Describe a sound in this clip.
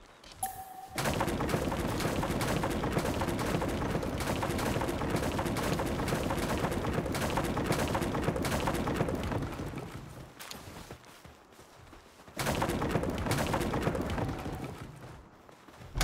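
Wooden planks crash and clatter loudly as a structure breaks apart.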